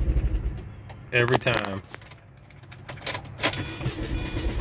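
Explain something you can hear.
A car engine cranks and starts up.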